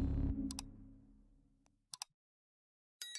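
A mouse button clicks twice.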